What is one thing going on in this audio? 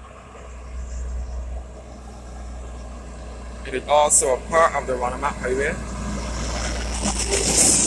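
A heavy tanker truck approaches and rumbles past up close.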